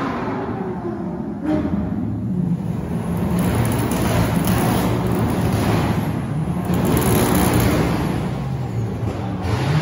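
Tyres hiss on wet tarmac.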